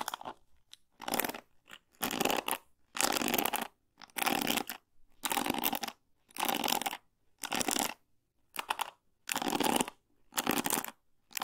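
Stiff brush bristles scratch and rustle close by in slow, regular strokes.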